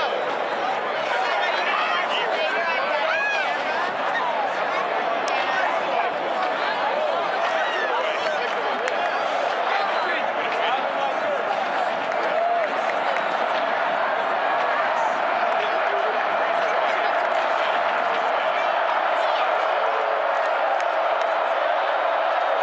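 A huge stadium crowd roars and cheers loudly throughout.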